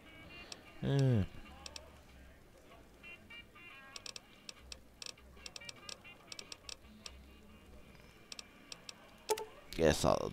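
Short soft clicks tick as a menu selection moves from item to item.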